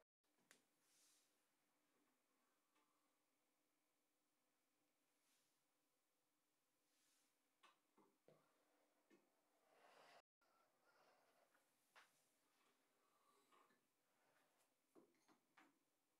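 A metal furnace lid clanks as it is lifted and set back.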